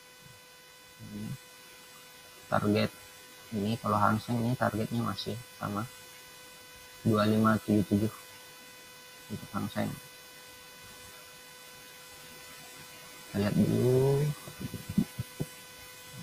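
A young man talks calmly through a microphone, in bursts with pauses.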